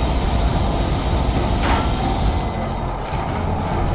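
A laser beam zaps in bursts.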